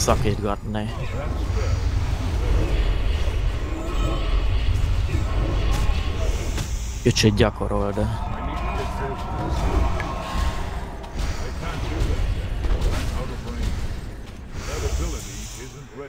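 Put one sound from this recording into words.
Magic spells crackle and weapons clash in a fantasy battle.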